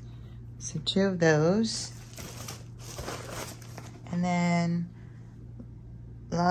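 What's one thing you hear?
Packaging rustles softly as small items are handled.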